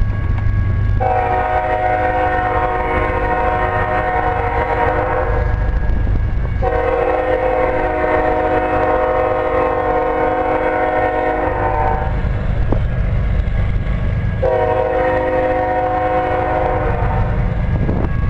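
A train horn blows in long blasts in the distance.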